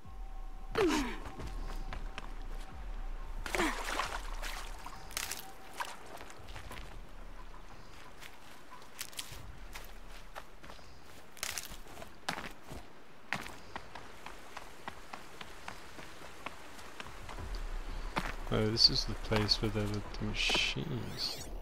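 Footsteps crunch over rocks and undergrowth.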